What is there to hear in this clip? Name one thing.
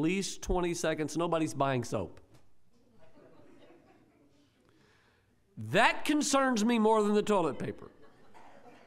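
An elderly man speaks calmly through a microphone in a room with some echo.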